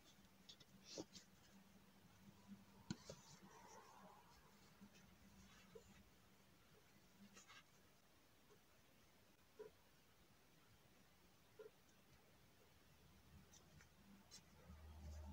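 A crochet hook and yarn rustle and click softly, close by.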